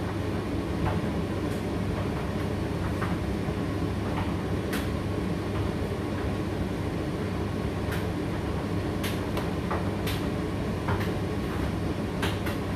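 A condenser tumble dryer runs with a low, steady hum.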